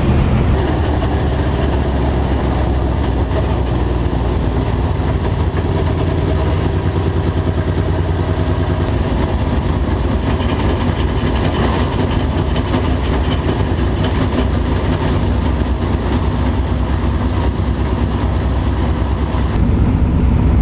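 Other race car engines roar nearby.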